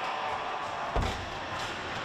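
A hockey stick smacks a ball with a sharp crack.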